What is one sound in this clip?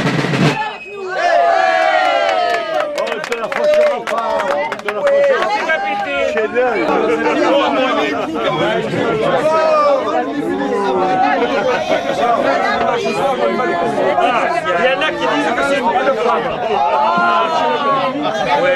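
A crowd of adults chatters, laughs and cheers close by.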